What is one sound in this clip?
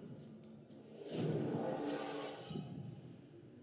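A loud whoosh sweeps through and fades.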